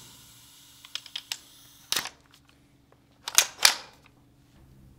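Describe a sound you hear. Small clicks and rattles come from a toy gun being handled.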